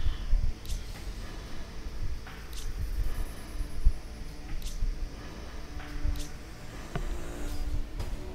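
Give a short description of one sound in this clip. Soft game menu clicks sound as selections change.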